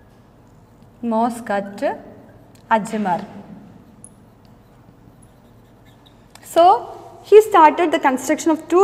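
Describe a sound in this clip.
A woman speaks clearly into a close microphone, explaining with pauses.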